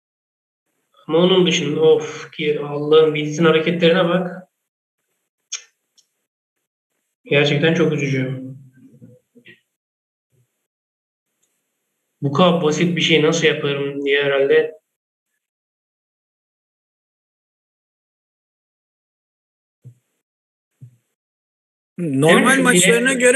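A man comments with animation over an online call.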